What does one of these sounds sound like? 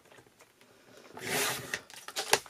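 A paper trimmer blade slides along its track, cutting card.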